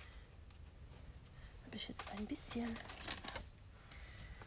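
Paper rustles as it is handled and set down.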